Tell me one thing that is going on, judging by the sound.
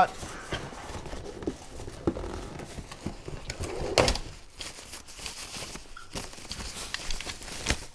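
A young man talks casually, close by.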